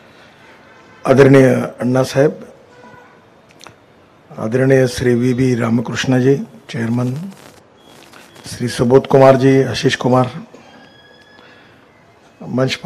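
A middle-aged man speaks through a microphone to an audience in measured phrases with pauses.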